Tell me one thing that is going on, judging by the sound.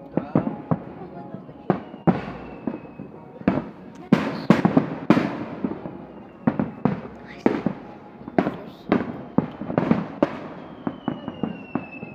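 Fireworks burst with loud, sharp bangs one after another.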